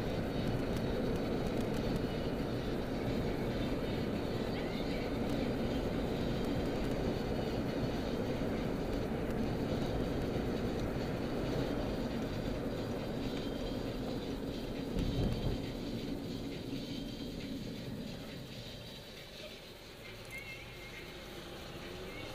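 Road noise drones inside a moving car, then quiets as the car slows to a stop.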